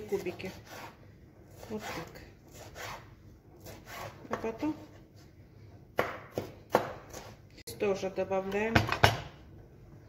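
A knife chops on a wooden cutting board.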